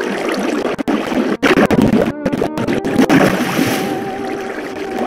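Water rushes and splashes nearby.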